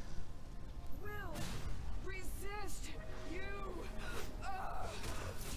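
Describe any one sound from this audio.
Magical energy blasts zing and crackle in a fight.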